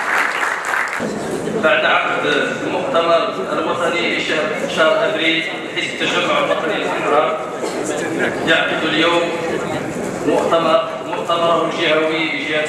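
A man speaks steadily into a microphone over loudspeakers in an echoing hall.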